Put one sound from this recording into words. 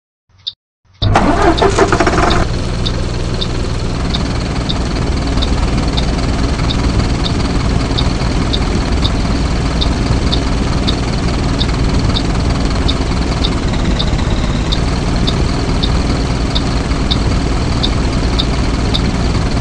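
A bus engine starts and rumbles steadily.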